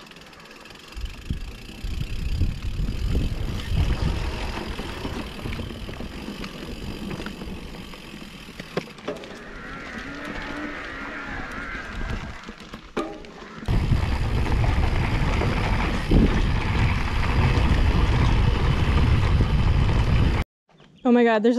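Wind rumbles loudly against a moving bike.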